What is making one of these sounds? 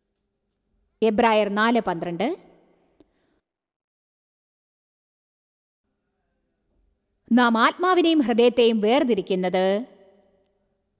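A middle-aged woman speaks through a microphone in a calm, deliberate manner, with pauses between phrases.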